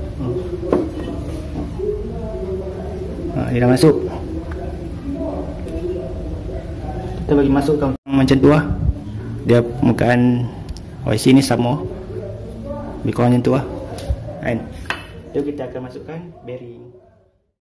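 A metal part clinks as it is handled and set down.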